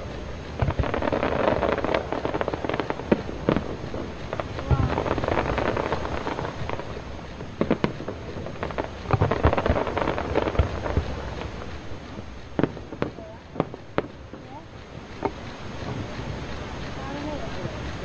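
Fireworks boom and bang in the distance, echoing outdoors.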